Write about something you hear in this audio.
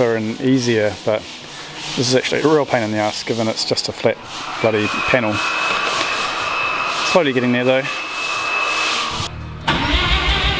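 A heat gun blows with a steady whoosh.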